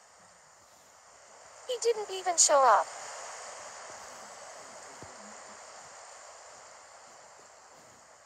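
Gentle waves wash softly onto a shore.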